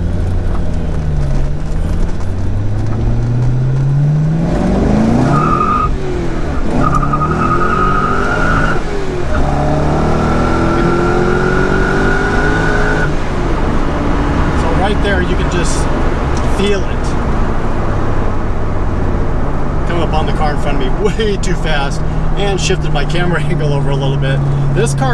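Wind and road noise rush steadily.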